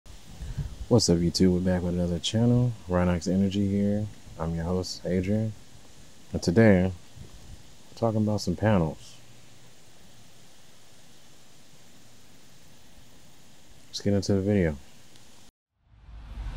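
A man speaks calmly and close up into a microphone.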